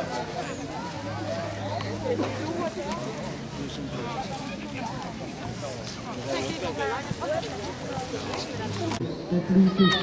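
Children talk nearby with animation.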